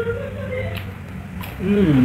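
A young man crunches a raw vegetable.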